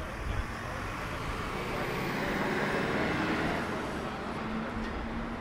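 A truck drives past close by, its engine rising and fading.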